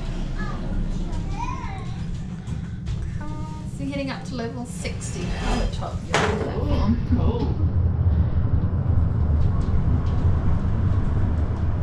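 A lift hums and rumbles steadily as it rises, growing louder partway through.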